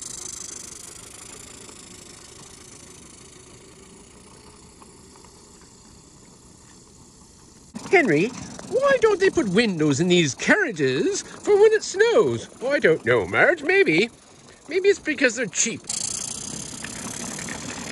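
A small model train rattles softly along its tracks.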